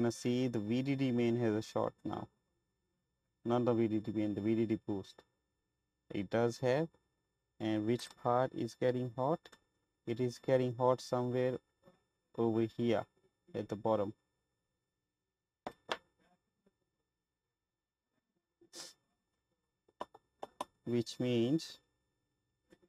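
A man talks calmly and closely into a microphone.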